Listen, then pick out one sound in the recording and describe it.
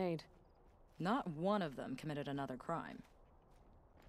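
A young woman answers in a firm voice.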